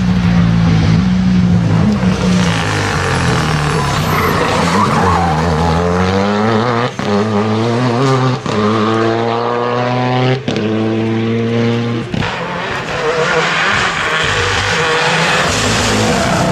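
A rally car engine roars and revs hard as it accelerates past.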